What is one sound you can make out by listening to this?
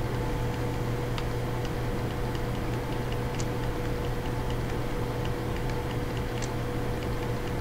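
A video game plays short electronic beeps.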